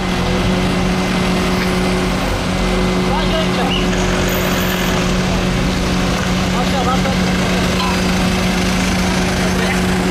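A van engine hums as the van drives up close and slows to a stop.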